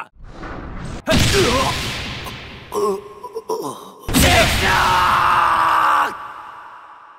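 A heavy blow lands with a loud crashing burst.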